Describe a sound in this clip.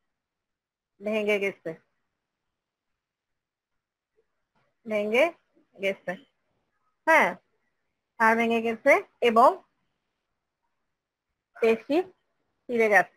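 A woman speaks calmly in short phrases, heard through an online call.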